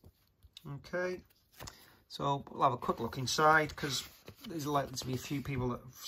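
Paper pages rustle as a booklet is flipped open.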